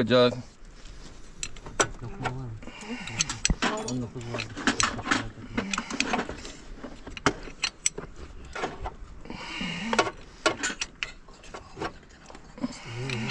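A wrench clinks against a metal bolt.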